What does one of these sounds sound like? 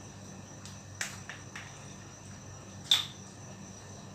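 A plastic bottle knocks and crinkles as it is picked up.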